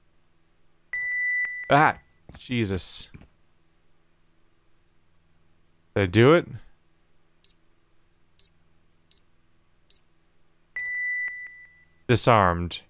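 An alarm panel sounds a longer steady electronic tone.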